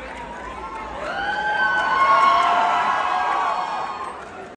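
A crowd of young people cheers loudly.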